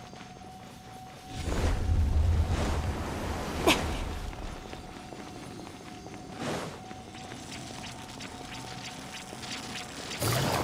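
Quick footsteps patter on a stone floor.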